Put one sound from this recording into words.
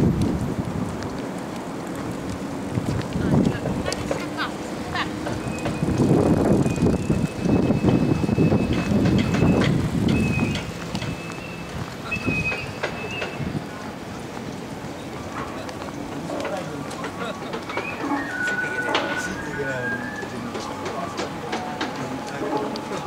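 Traffic rumbles along a city street outdoors.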